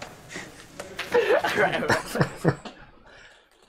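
A man laughs behind his hand.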